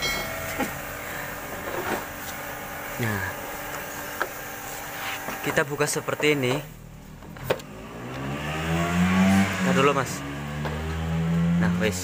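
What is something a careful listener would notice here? Plastic parts knock and click as a radiator core is pulled from its housing.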